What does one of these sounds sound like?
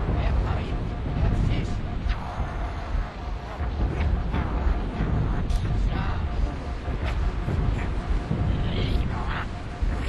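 A glowing blade hums steadily.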